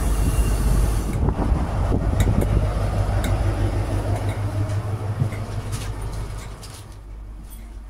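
A diesel train engine idles with a loud, deep rumble.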